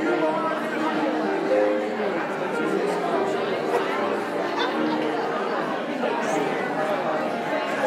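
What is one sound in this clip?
Several men and women chat and murmur at once in a room with some echo.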